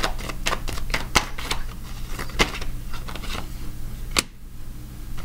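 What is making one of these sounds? Hands rustle and clatter small objects on a wooden table.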